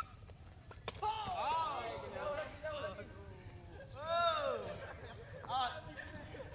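Young men shout and call out loudly outdoors.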